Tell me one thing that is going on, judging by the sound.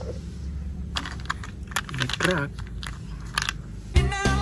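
A plastic toy truck clatters as it is picked up.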